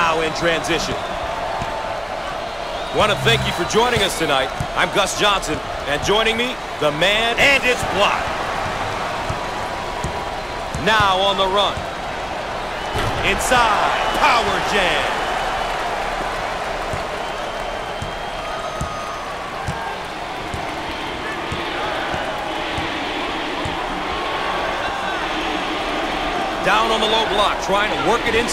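A crowd murmurs and cheers steadily in a large echoing arena.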